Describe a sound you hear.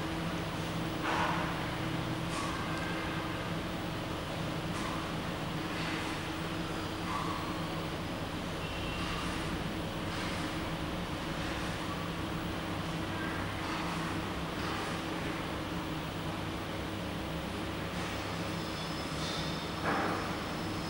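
An arcade game plays looping music with chiming sounds.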